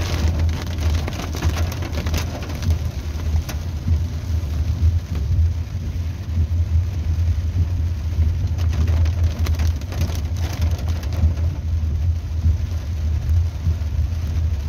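A car drives on a wet road, heard from inside.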